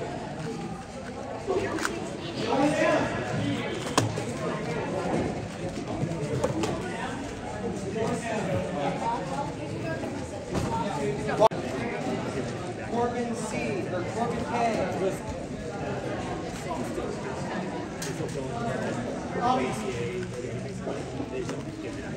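A puzzle cube clicks as it is quickly twisted by hand.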